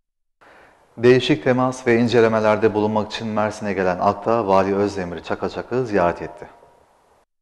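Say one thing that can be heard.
A man speaks calmly and clearly into a microphone.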